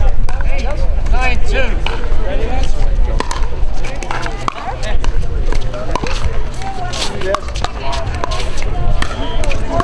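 People chatter on nearby courts outdoors.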